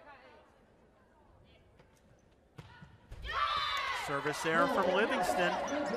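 A volleyball is struck hard during a rally.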